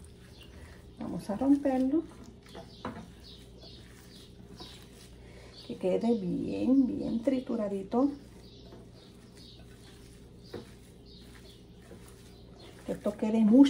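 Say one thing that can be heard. Gloved hands squish and mash chopped boiled eggs in a glass bowl.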